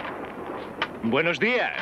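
A young man calls out loudly.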